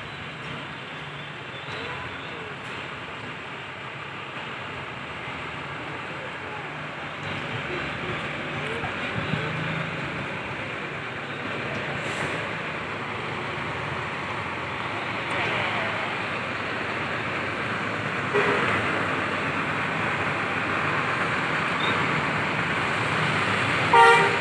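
A bus engine rumbles as a bus drives slowly closer and grows louder.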